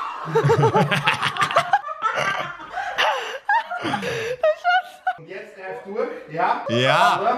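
A young man laughs loudly and exclaims close to a microphone.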